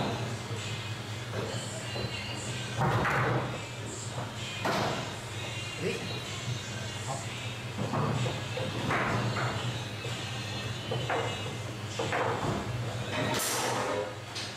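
A plastic foosball ball knocks and clacks against figures and the table walls.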